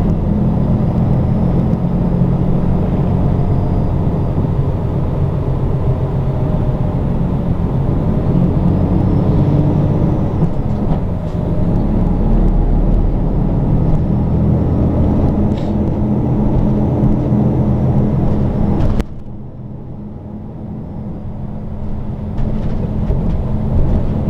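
A vehicle engine hums steadily from inside a moving car.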